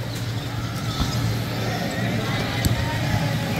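A ball is knocked with dull thuds.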